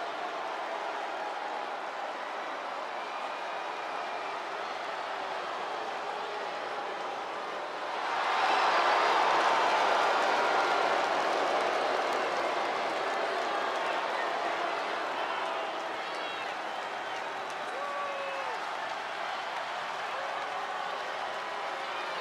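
A large crowd cheers and roars in a big arena, swelling louder for a while.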